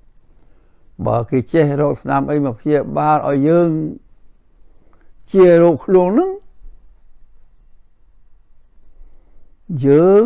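An elderly man speaks calmly and slowly, close to a microphone, with pauses.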